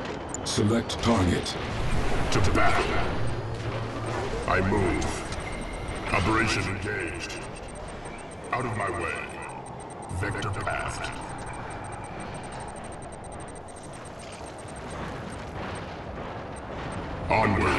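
A giant walking machine stomps with heavy, clanking steps.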